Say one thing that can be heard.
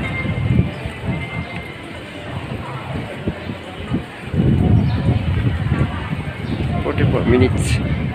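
Footsteps scuff on paving outdoors.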